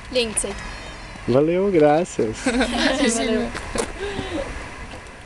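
Young women speak and laugh close by, outdoors.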